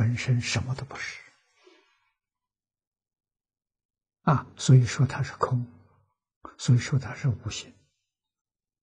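An elderly man speaks calmly and closely into a microphone, in short phrases with pauses.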